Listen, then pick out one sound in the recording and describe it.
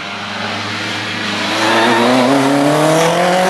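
A second racing car engine screams as it approaches and accelerates.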